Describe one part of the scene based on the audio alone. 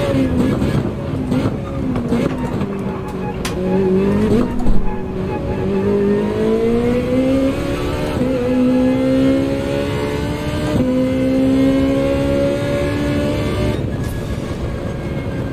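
A racing car engine revs high and shifts gears.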